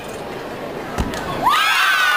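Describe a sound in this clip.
A gymnast lands with a heavy thud on a mat.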